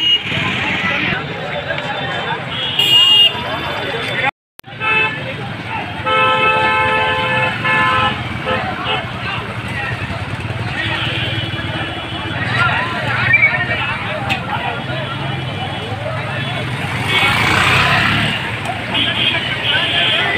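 Motorcycle engines idle and rev nearby.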